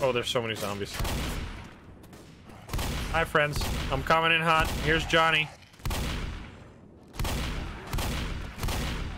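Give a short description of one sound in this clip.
A shotgun fires loud repeated blasts.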